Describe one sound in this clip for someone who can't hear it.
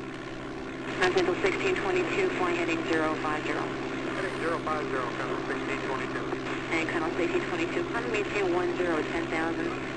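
A middle-aged man talks with animation close to a microphone.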